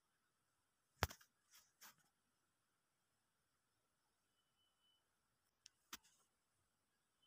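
Yarn rustles softly as hands handle crocheted pieces.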